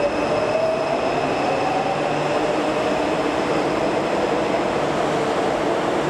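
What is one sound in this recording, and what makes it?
A subway train rumbles and hums loudly as it rolls slowly along the platform.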